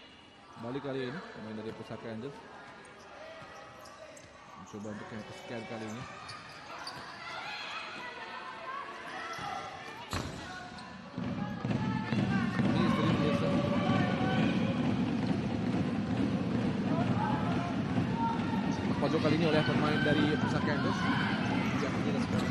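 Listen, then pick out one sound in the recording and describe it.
A ball thuds off a player's foot on a hard court.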